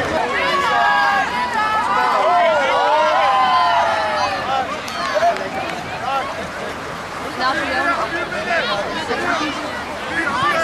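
A crowd of children shouts and cheers outdoors.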